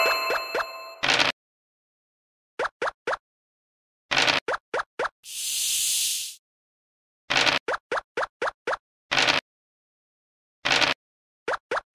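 A dice rattles as it rolls in a board game.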